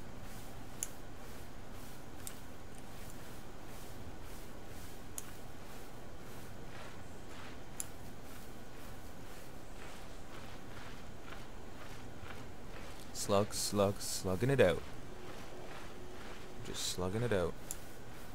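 Dry grass rustles as a figure crawls through it.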